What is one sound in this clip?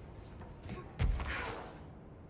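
A heavy thud sounds as a person lands from a jump.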